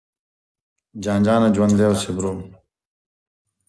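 A young man sings a short, drawn-out line over an online call.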